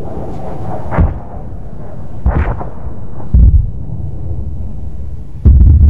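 Explosions boom loudly in bursts.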